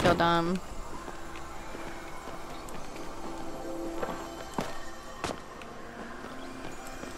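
A magical portal hums with a steady, shimmering tone.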